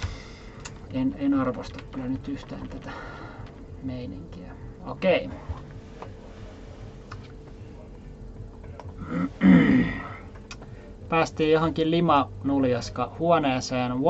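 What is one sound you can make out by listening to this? A young woman talks casually, close to a microphone.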